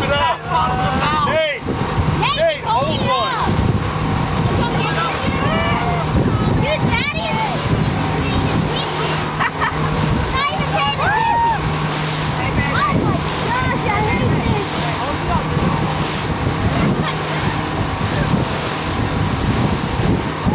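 Young people shout and cheer excitedly nearby.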